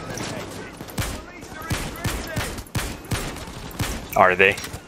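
A rifle fires a series of sharp gunshots.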